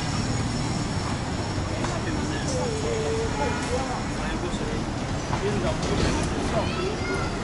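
Traffic rumbles steadily nearby, outdoors.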